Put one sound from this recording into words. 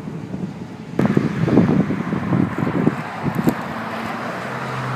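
Cars rush past on a highway.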